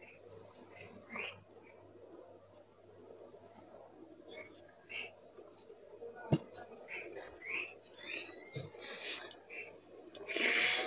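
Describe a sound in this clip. A young woman chews noodles with wet smacking sounds.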